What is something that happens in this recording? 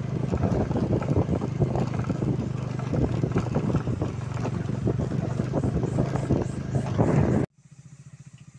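A motorcycle engine roars loudly close by.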